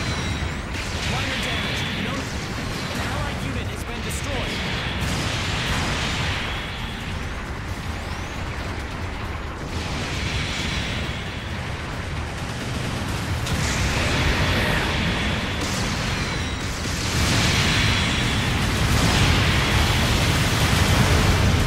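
Beam guns fire in quick bursts.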